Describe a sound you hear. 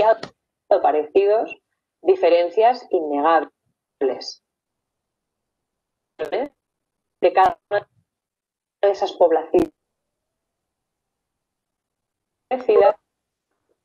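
A young woman speaks calmly and clearly into a microphone, in short phrases with pauses.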